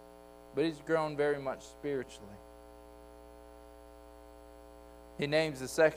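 A man speaks calmly through a microphone in an echoing room, with pauses.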